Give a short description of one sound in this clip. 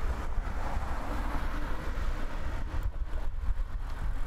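A van drives past close by on the road.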